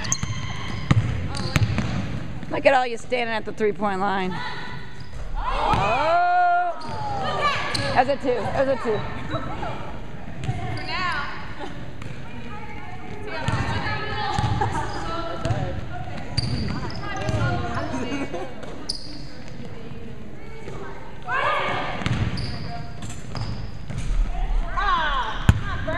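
Young women shout and call to each other across an echoing hall.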